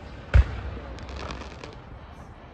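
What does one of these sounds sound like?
Firework sparks crackle.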